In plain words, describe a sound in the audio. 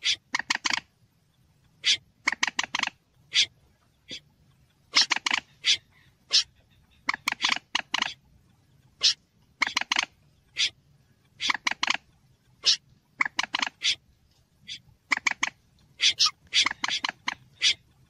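A bird gives sharp, repeated calls in quick bursts.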